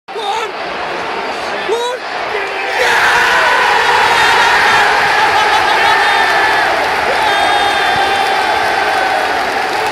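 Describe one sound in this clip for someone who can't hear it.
A young man shouts and cheers close up.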